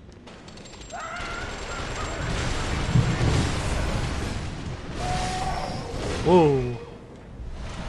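Weapons clash and strike in a loud, rushing fight.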